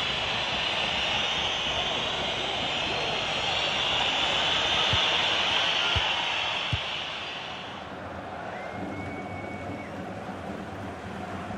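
A large stadium crowd roars loudly, then quiets down.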